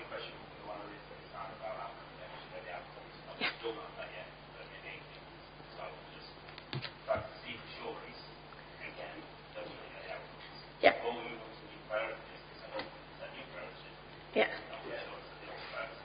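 A woman speaks calmly through a microphone in a room with some echo.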